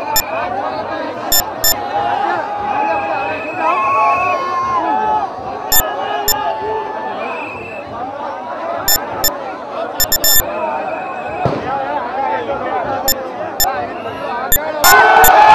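A crowd of men talks and shouts excitedly close by.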